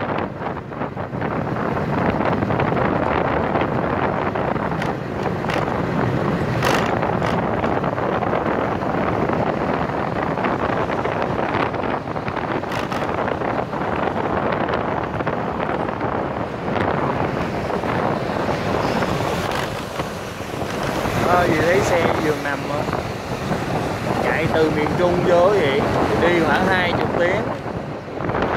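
Wind roars steadily past a vehicle driving along a road.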